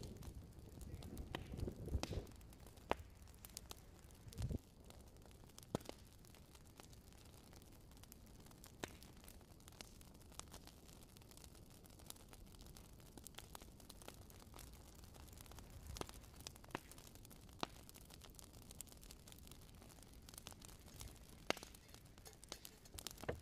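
Burning wood crackles and pops in a small stove.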